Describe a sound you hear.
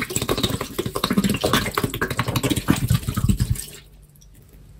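Liquid pours and splashes from a bottle.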